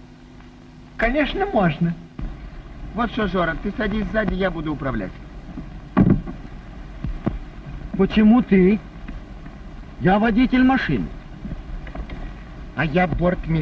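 A young man talks with animation nearby.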